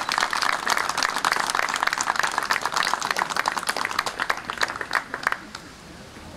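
A brass band plays a lively march outdoors.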